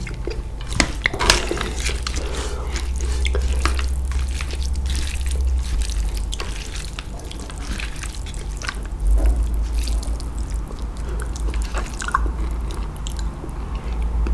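A fork and spoon scrape and clink against a metal bowl.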